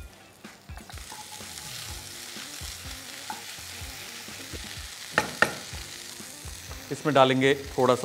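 Vegetables sizzle in a hot pan.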